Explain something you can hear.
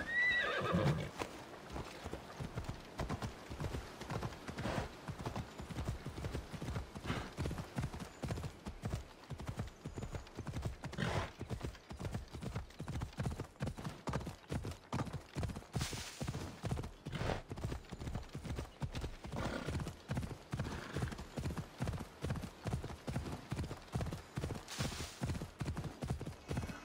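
A horse gallops with rapid, rhythmic hoofbeats.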